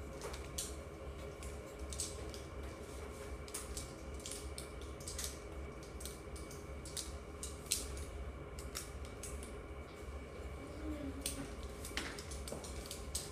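Pencils scratch and tap on paper.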